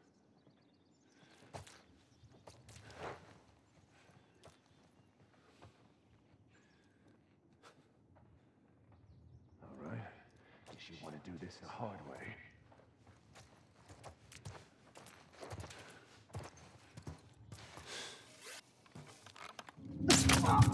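Footsteps shuffle softly over a gritty floor.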